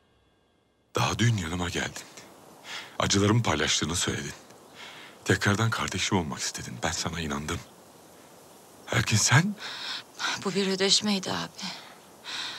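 A man speaks with emotion.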